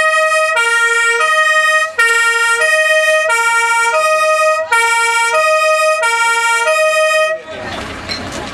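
A fire truck's two-tone siren blares close by.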